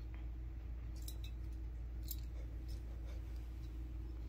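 A metal collar tag jingles.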